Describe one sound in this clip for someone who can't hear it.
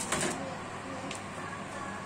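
An oven knob clicks as it turns.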